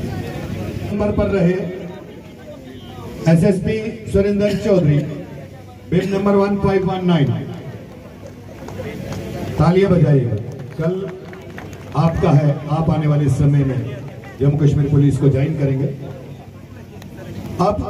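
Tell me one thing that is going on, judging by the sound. A man speaks loudly over a loudspeaker, outdoors.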